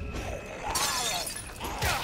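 A blade stabs into flesh with a wet, squelching thud.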